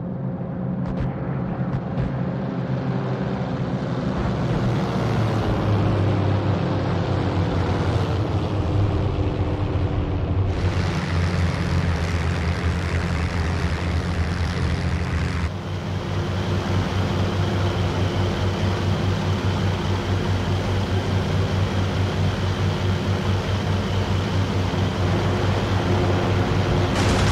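Propeller aircraft engines drone steadily overhead.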